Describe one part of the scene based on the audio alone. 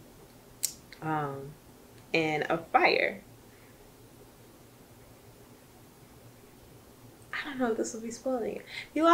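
A young woman speaks expressively and close up, with pauses.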